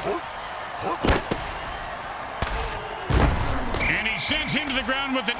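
Football players collide with heavy thuds.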